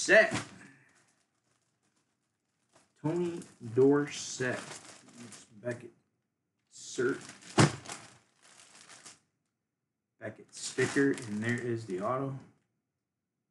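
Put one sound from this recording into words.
Plastic wrapping crinkles as a gloved hand handles it.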